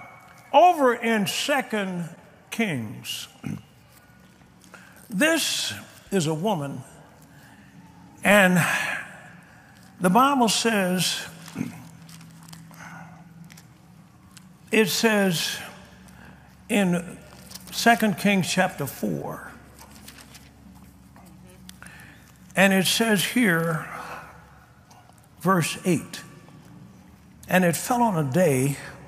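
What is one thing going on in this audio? A middle-aged man speaks forcefully into a microphone, in short bursts with pauses.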